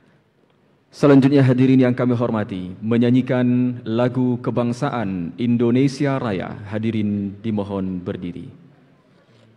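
A choir of women sings loudly through loudspeakers in a large hall.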